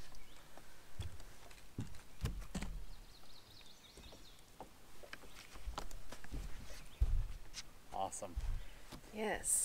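Footsteps thump on a boat's deck.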